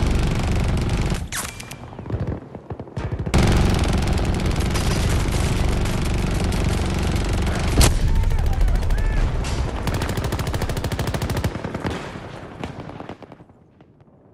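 Explosions rumble and boom loudly nearby.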